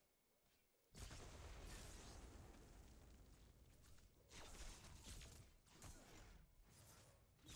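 Magic blasts crackle and whoosh in a fantasy battle.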